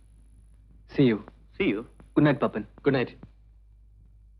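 A man speaks loudly with emotion, close by.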